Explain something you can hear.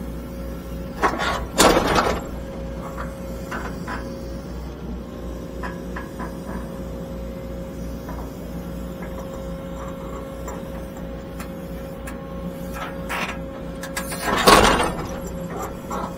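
An excavator's bucket scrapes and thuds into dirt.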